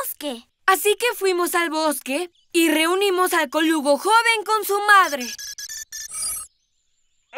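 A young boy speaks cheerfully and with animation.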